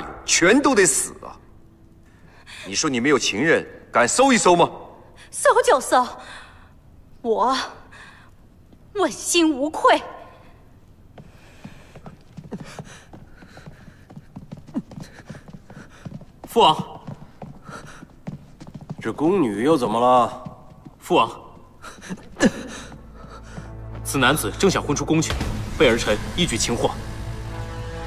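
A middle-aged woman speaks sternly.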